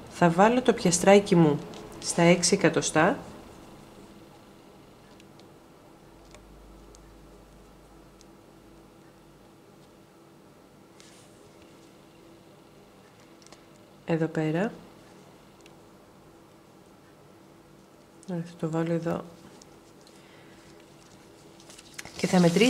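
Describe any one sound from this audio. Hands rustle softly against crocheted fabric.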